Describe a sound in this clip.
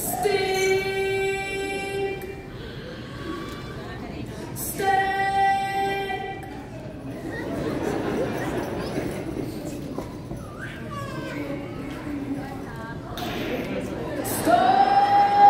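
A piano plays in a large echoing hall.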